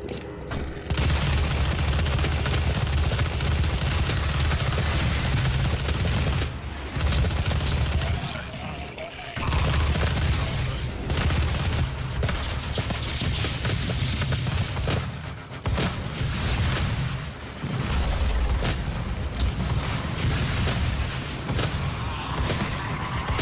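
Rapid gunfire blasts in a video game.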